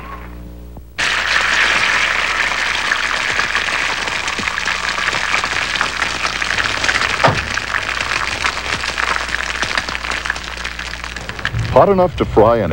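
Eggs sizzle and crackle in a hot pan.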